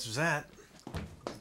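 A young man shouts loudly nearby.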